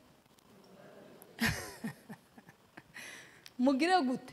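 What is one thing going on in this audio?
A woman laughs softly into a microphone.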